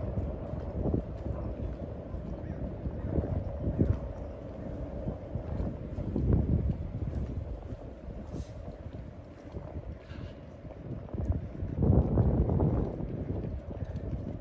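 Wind gusts rumble outdoors.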